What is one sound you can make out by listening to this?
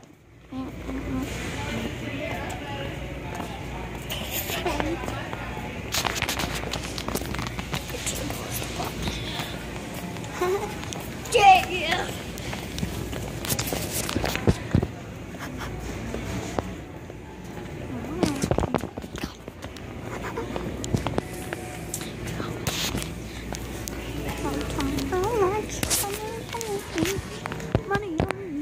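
A young man talks and shouts playfully close to a phone's microphone.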